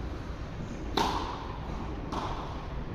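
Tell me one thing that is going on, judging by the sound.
A tennis racket strikes a ball with sharp pops in a large echoing hall.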